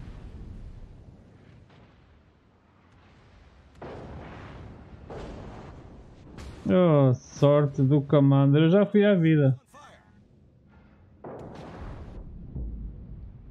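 Loud explosions boom and roar, one after another.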